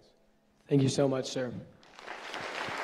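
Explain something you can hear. An elderly man speaks briefly through a microphone.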